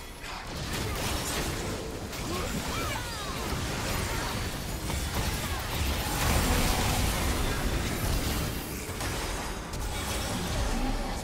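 Magic blasts and explosions crackle and boom in quick succession.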